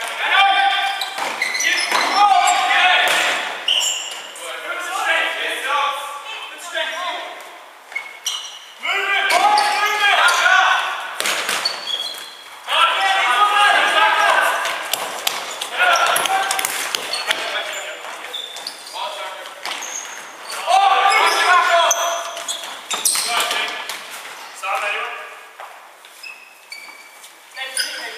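Sports shoes squeak sharply on a wooden floor in a large echoing hall.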